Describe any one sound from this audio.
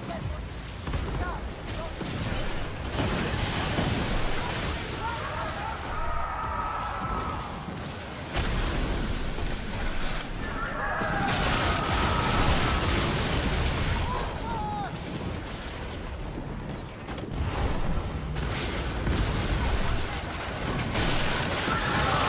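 Waves wash and splash against a ship's hull.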